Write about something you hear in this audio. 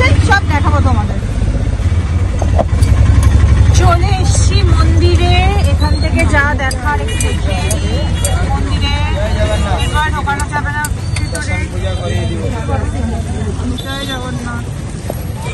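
An auto-rickshaw engine rumbles steadily up close.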